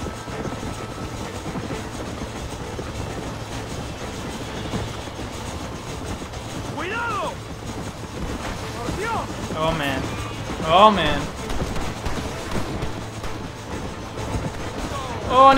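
A steam train rumbles and chugs along the tracks.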